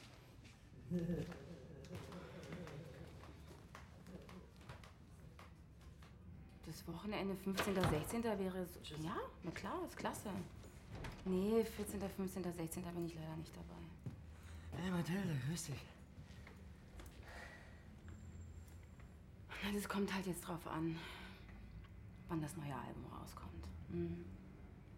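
A young woman talks into a phone, calmly and close by.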